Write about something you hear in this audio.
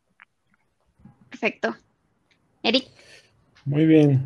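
A young woman laughs over an online call.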